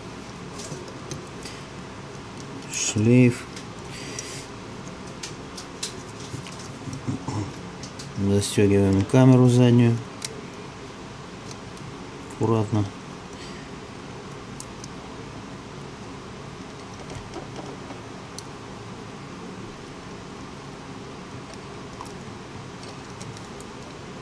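Small metal and plastic parts click and tick softly as a device is taken apart.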